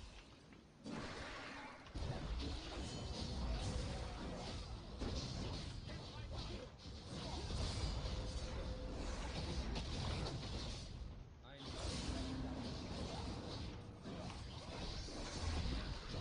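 Fantasy battle sound effects of spells and blows clash and crackle rapidly.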